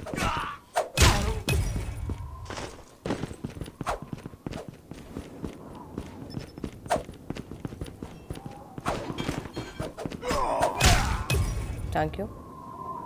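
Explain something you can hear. A blade swishes and strikes with a heavy thud.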